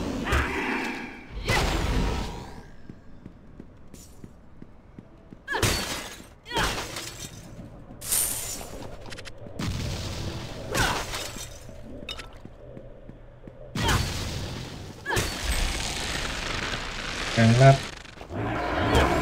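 Spell blasts whoosh and crackle in bursts.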